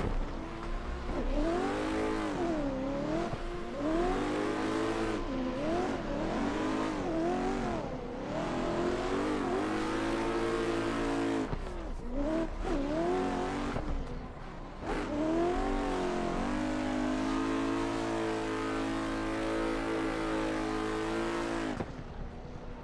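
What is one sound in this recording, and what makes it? A car engine revs up and down hard as the car drifts.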